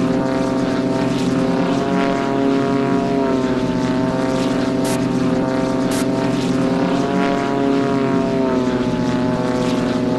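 A propeller plane's engine drones steadily and shifts slightly in pitch.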